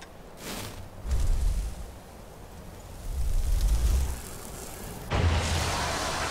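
A magic spell crackles and booms with electric bursts.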